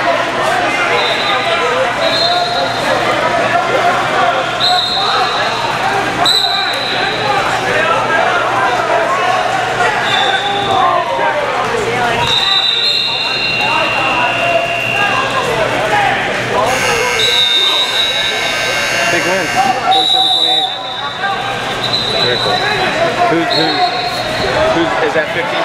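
Shoes squeak on a wrestling mat.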